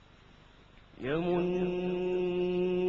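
A man chants in a long, loud, held melody through a microphone.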